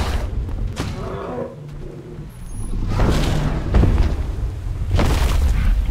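Heavy blows strike with loud thuds.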